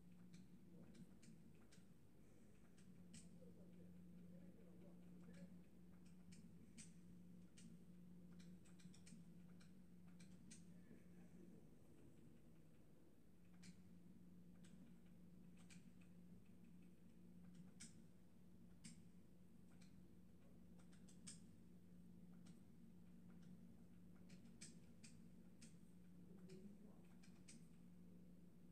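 Short sharp clicks sound from a television game menu as options change.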